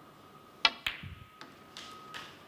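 A snooker ball rolls into a pocket with a low rumble.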